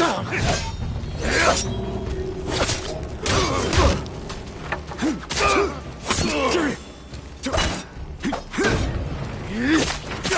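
Men grunt and shout as they fight.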